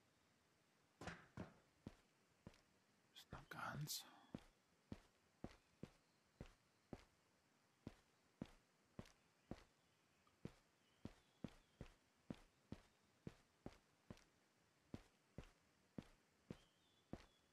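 Footsteps tread steadily across a hard floor.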